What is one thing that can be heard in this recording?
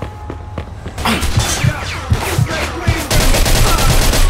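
Gunshots ring out from farther away.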